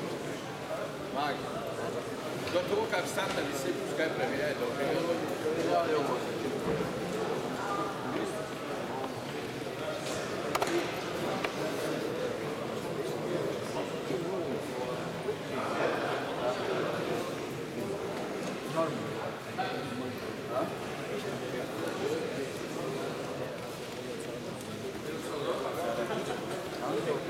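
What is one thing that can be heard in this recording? A crowd of men murmurs and talks throughout a large echoing hall.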